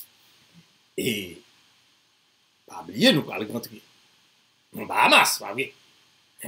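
A middle-aged man speaks with animation in short bursts, close to a microphone.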